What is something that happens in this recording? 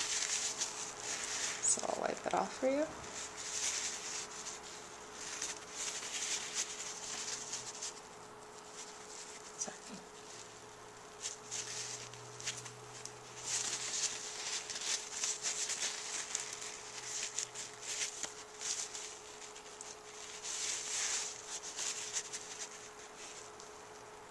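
A tissue rubs softly against fingernails.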